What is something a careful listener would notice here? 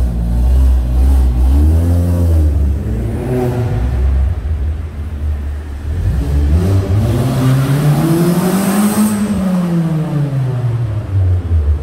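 A car engine revs up and down repeatedly, echoing loudly around a large enclosed space.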